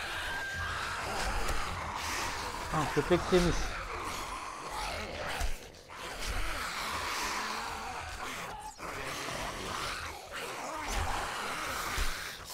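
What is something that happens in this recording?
A crowd of zombies groans and growls.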